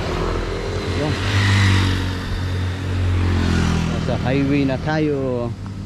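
A motorcycle engine rumbles past on a road.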